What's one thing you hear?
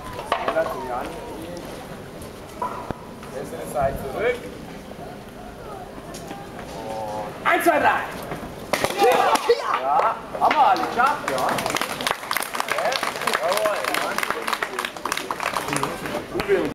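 Children and adults chatter and call out nearby outdoors.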